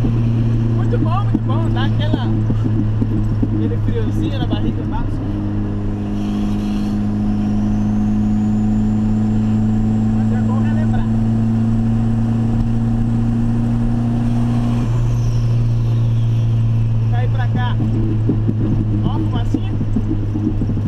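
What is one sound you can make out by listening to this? A young man talks casually inside the car.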